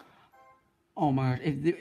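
A loud, cheerful game fanfare plays.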